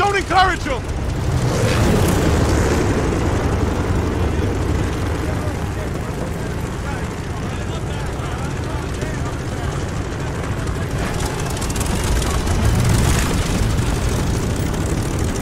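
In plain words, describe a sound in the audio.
Propeller engines drone loudly and steadily nearby.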